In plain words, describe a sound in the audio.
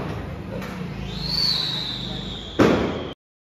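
A firecracker fuse fizzes and hisses.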